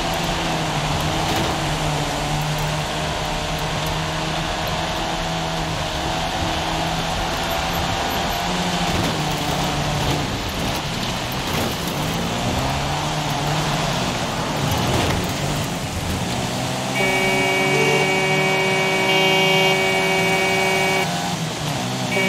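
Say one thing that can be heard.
A small car engine revs hard, rising and dropping in pitch as it shifts gears.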